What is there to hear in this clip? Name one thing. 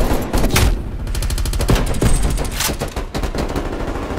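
An automatic rifle fires rapid, loud bursts.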